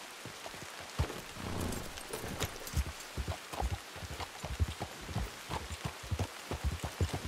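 A horse's hooves clop over rock.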